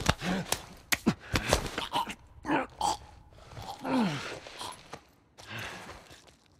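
A man grunts and gasps in pain.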